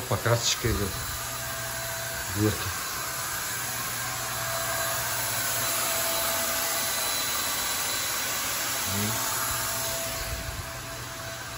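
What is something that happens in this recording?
A paint sprayer hisses and whirs steadily nearby.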